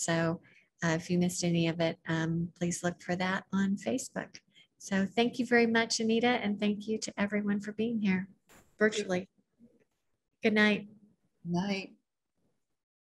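An elderly woman speaks calmly and closely over an online call.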